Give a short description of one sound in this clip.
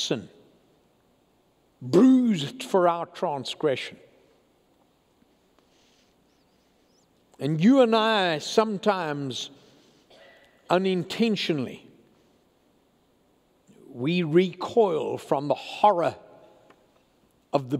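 An elderly man preaches emphatically through a microphone, with pauses between phrases.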